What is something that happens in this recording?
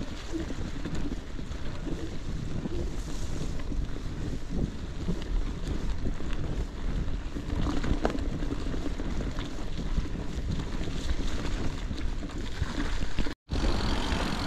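Bicycle tyres crunch over leaves and dirt.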